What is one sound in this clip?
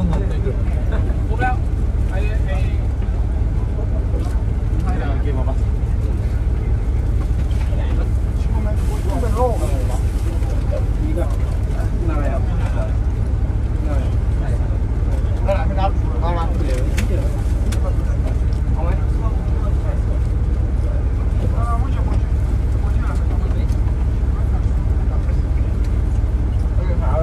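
A coach engine and road noise rumble low inside the coach.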